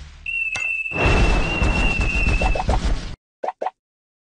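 An explosion bursts with a loud crackling roar.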